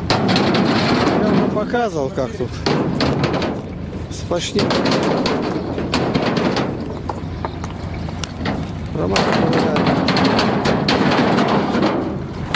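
Stones knock and clatter as they are handled.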